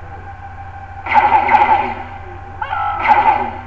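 A loud, tense electronic music sting plays.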